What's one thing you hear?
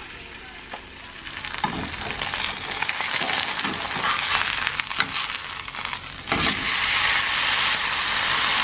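Food sizzles loudly in a frying pan.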